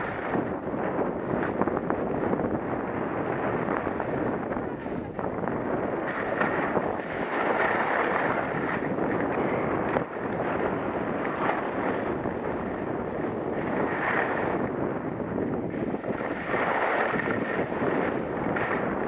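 Skis carve and scrape over snow.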